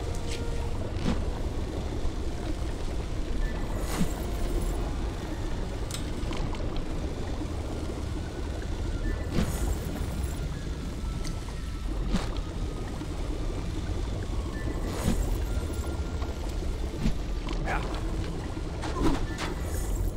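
A character swings back and forth on a rope with a whoosh on each swing.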